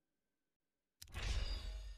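A bright electronic game chime rings out.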